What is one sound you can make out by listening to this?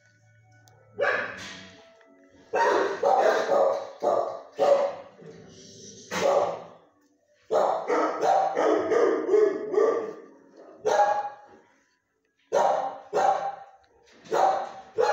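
A dog barks close by in an echoing room.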